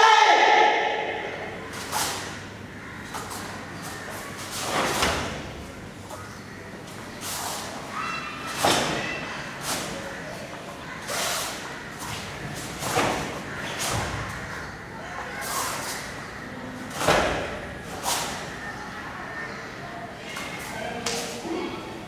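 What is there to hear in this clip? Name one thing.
Bare feet thump and slide on a padded mat.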